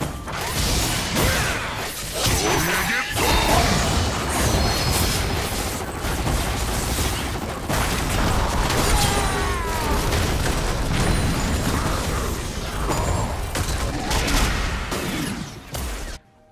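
Video game spells and attacks blast and clash in a busy battle.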